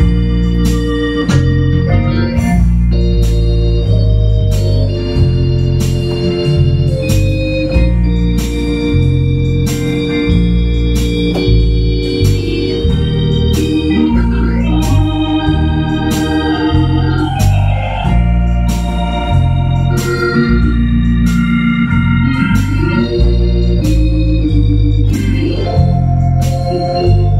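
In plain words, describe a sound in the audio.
An electronic keyboard plays a lively melody over deep bass chords.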